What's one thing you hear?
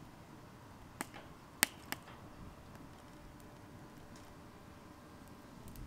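Burning wood crackles and pops now and then.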